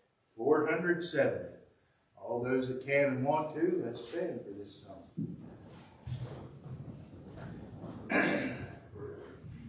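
A man reads out calmly in a room with some echo.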